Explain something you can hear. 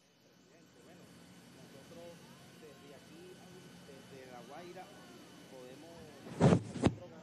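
A man speaks calmly into a microphone, faint and distant.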